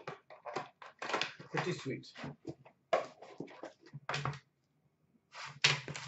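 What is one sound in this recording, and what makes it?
A cardboard box scrapes as it is moved.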